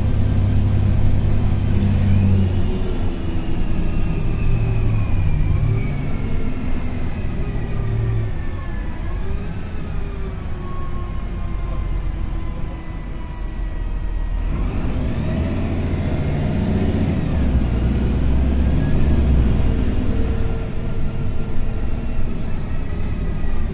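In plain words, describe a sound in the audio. A bus engine hums and whines steadily as the bus drives along.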